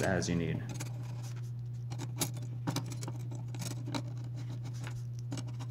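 Small plastic parts click and tap together as hands handle them.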